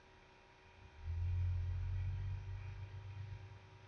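A jet airplane rumbles low overhead.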